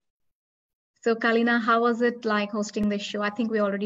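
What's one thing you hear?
A young girl speaks calmly through an online call.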